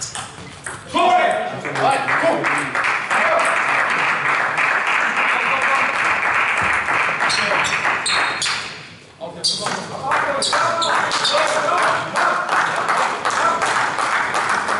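A small crowd claps and cheers.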